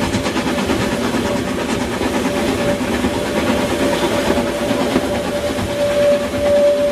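A steam locomotive chuffs loudly as it pulls a train past.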